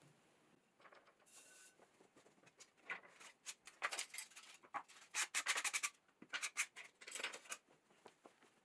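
Wooden and metal tools clatter and knock as they are moved on a board.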